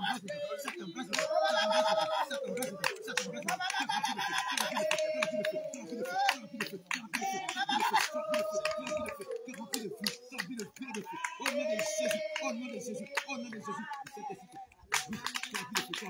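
A group of men and women sing together outdoors nearby.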